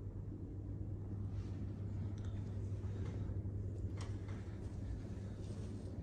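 A fabric curtain rustles softly as a hand pushes it aside.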